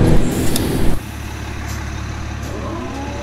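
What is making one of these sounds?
A diesel city bus engine idles.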